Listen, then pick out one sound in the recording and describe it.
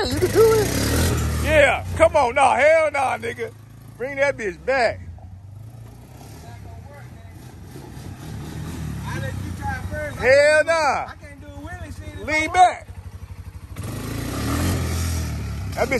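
A quad bike engine idles and revs nearby.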